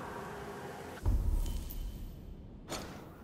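A deep whoosh sounds as a menu opens.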